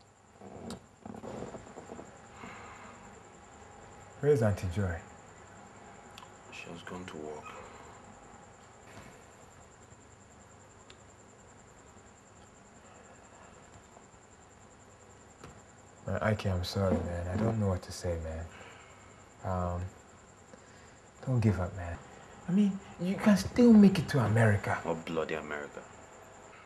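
A man speaks in a low, weary voice close by.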